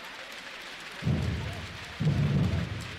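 Drummers strike large drums with heavy, booming beats.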